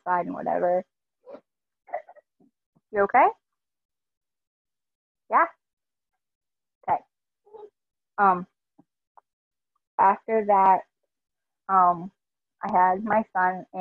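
A young woman talks casually over an online call, in short bursts with pauses.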